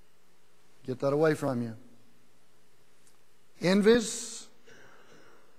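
A middle-aged man speaks calmly through a microphone, with pauses between phrases.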